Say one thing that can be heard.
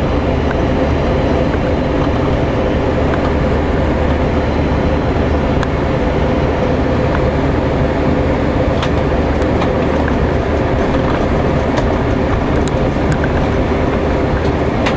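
A propeller engine drones loudly and steadily from close by.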